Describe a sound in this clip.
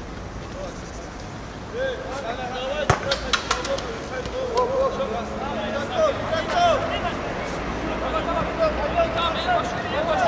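Men shout and call out to each other across an open field.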